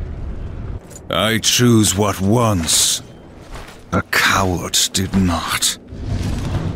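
A man speaks in a deep, low, menacing voice.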